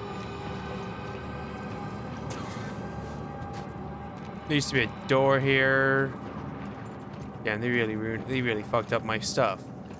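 Heavy boots tread slowly over debris.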